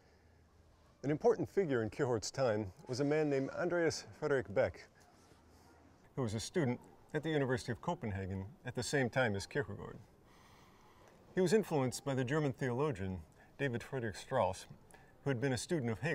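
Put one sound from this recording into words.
A middle-aged man speaks calmly and clearly to the listener, close by.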